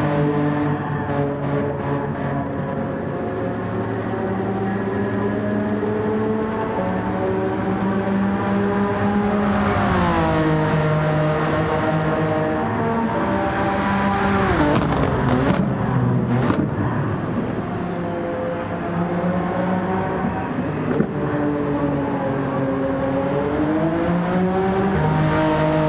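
A racing car engine roars at high revs, its pitch rising and dropping sharply as it shifts gears.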